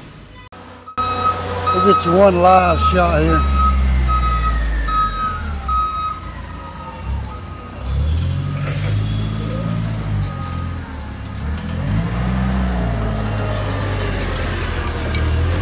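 A forklift engine hums and rumbles as it drives closer.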